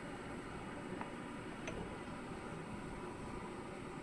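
A ceramic lid is lifted off a pot with a light clink.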